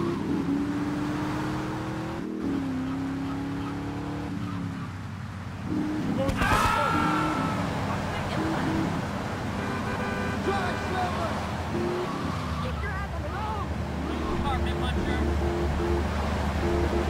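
A car engine drones steadily, its pitch shifting as it speeds up and slows.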